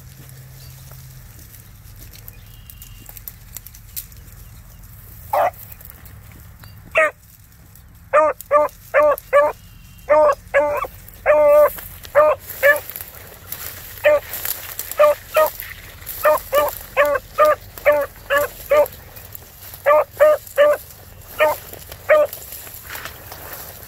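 Dry brush rustles as a dog pushes through it.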